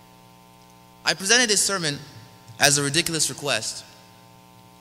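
A young man speaks calmly into a microphone in an echoing hall.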